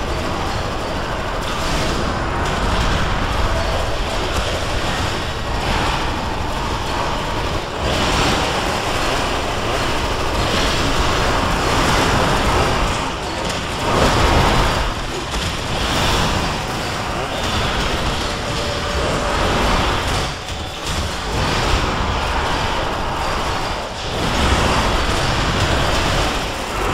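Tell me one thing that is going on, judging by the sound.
Energy weapons zap and crackle again and again in a loud fight.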